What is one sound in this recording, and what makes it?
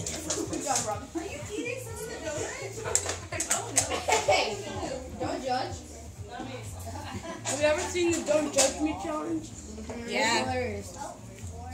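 Young boys talk and shout excitedly close by.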